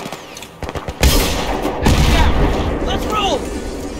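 A heavy explosion booms and rumbles close by.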